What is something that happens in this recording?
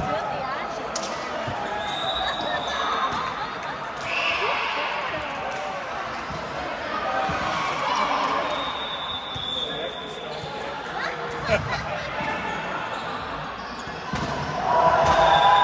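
Many people chatter throughout a large echoing hall.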